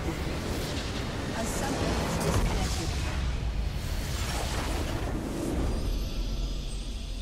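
A loud explosion booms and crackles.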